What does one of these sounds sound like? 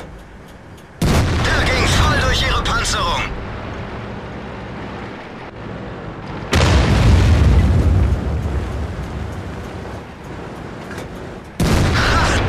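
A tank cannon fires with a loud boom that rings out.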